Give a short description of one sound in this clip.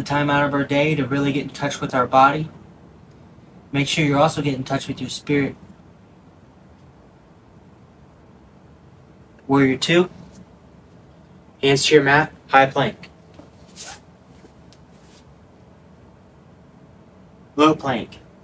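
A man speaks calmly, close to a microphone, giving instructions in short phrases.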